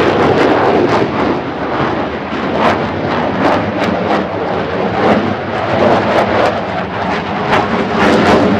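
A jet engine roars loudly and steadily overhead, crackling and rumbling.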